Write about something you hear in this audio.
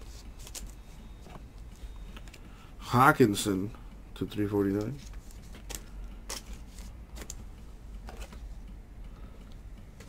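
Plastic card sleeves rustle and crinkle close by.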